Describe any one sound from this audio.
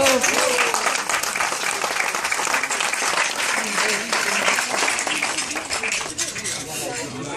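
A crowd of men and women chatter loudly close by.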